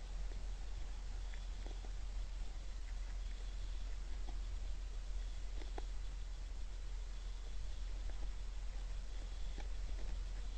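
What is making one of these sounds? Deer crunch corn as they feed, with soft clicks and nibbles.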